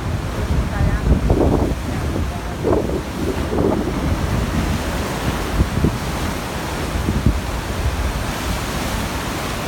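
Rough sea waves crash and churn with a rushing roar.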